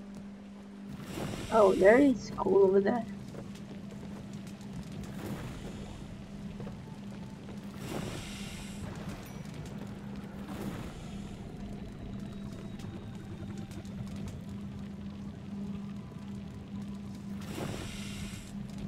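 A fire roars and crackles in a furnace.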